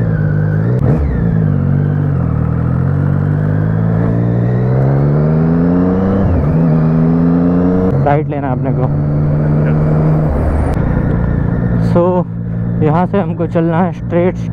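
Wind rushes past as the motorcycle rides.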